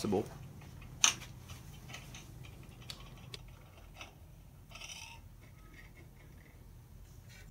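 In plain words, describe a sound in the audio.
Wooden-handled chisels clink and knock on a metal table.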